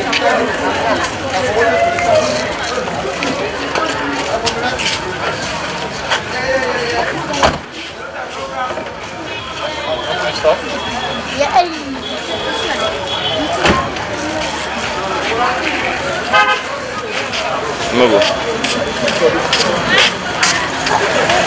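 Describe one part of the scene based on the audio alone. A busy street crowd chatters in the background outdoors.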